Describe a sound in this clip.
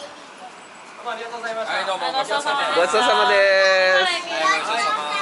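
Young girls chatter close by.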